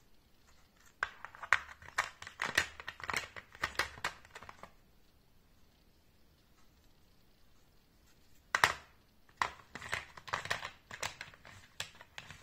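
Small hard parts click and rattle against a plastic case.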